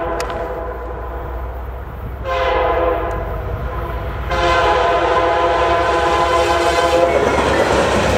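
A train horn blows loudly in long blasts.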